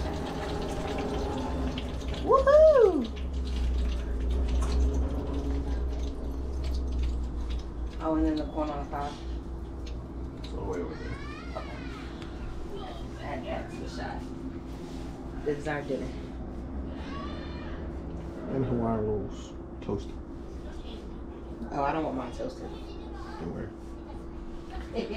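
Liquid bubbles softly in a pot on the stove.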